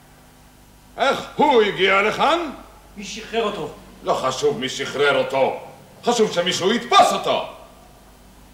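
A man speaks loudly and theatrically.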